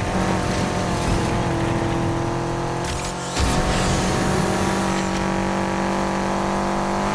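A car engine roars at high speed, its pitch shifting with gear changes.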